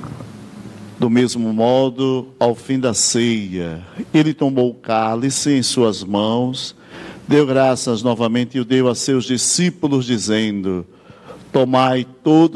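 An older man chants into a microphone in a large echoing room.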